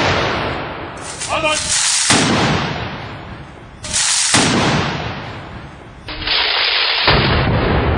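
Rifles clatter as a group of soldiers drill in unison.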